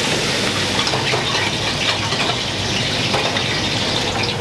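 A metal spatula scrapes against a pan.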